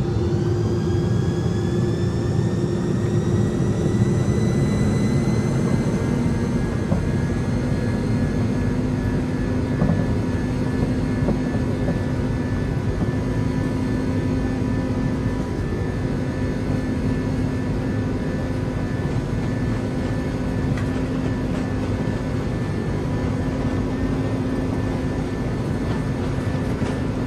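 Aircraft wheels rumble over a runway.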